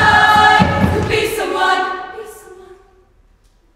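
A choir of young women sings together in a large, echoing hall.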